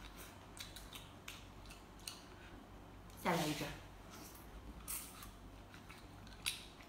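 A young woman chews and crunches on crab shell up close.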